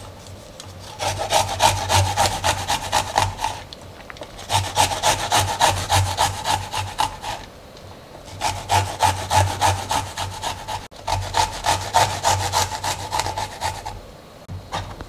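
Garlic is grated on a metal hand grater in quick rasping strokes.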